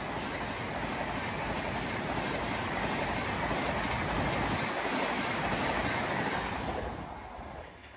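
A passenger train rushes past close by with a loud rumble and clatter of wheels on the rails.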